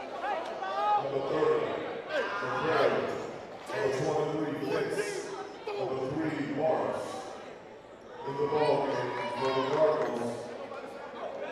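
Young men shout and call out loudly in an echoing hall.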